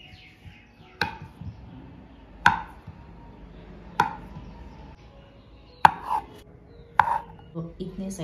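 A knife chops through soft dough on a wooden board, knocking sharply.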